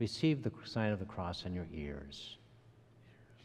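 An elderly woman reads aloud calmly in a slightly echoing room.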